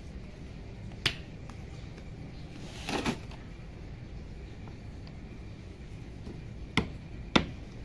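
A hoe chops into soil.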